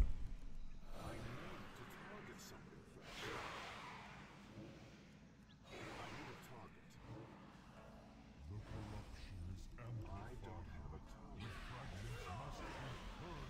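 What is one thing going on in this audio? Game spell effects whoosh and crackle.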